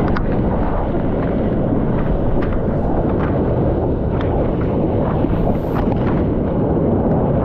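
Water splashes and sprays around a surfboard.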